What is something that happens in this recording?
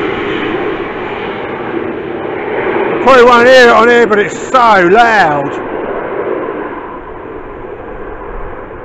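A jet plane roars in the distance overhead.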